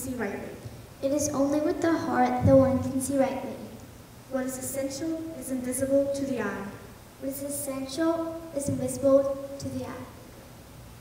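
A child speaks with feeling.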